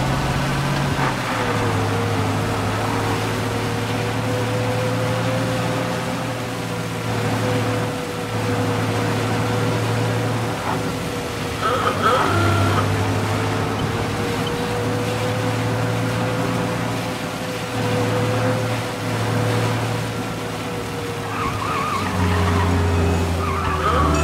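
An old car engine hums steadily and shifts in pitch as the car speeds up and slows.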